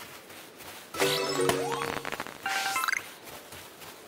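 A bright electronic jingle chimes.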